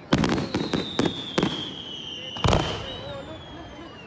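A firework rocket whistles as it climbs.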